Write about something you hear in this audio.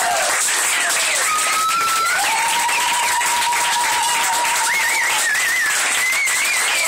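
A group of young women and men sing and shout loudly together, close by.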